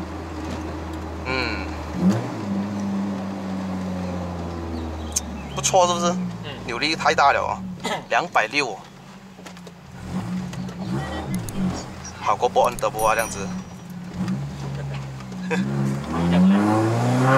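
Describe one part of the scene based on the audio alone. A car engine hums at low revs.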